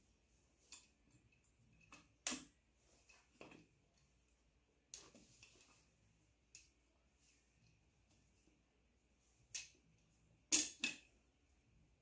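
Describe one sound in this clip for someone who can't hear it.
A metal wrench clicks and clanks against an engine part.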